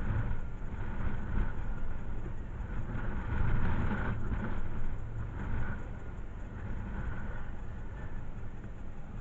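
Wind gusts across an open field and buffets the microphone.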